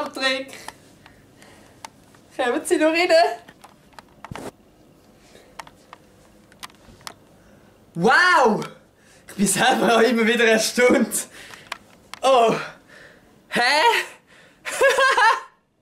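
A young man laughs close to the microphone.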